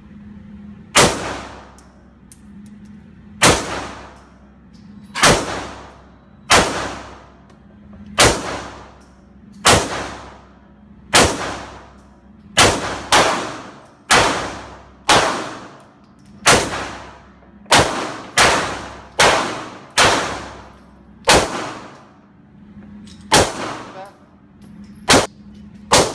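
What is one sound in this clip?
A pistol fires loud shots one after another, echoing in a large indoor hall.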